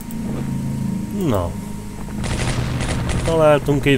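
Game battle sounds of gunfire and explosions ring out briefly.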